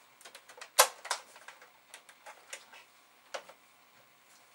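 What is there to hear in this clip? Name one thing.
Plastic and metal parts clatter and click on a desk.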